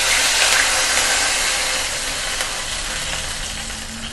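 Liquid pours into a sizzling pan.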